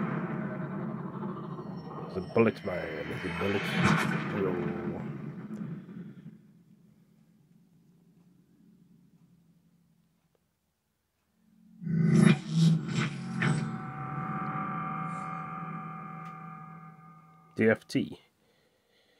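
Intro music and sound effects play from a television's speakers.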